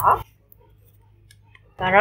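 A knife taps on a cutting board.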